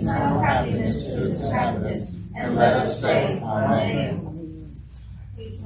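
A woman reads out into a microphone in a room with a slight echo.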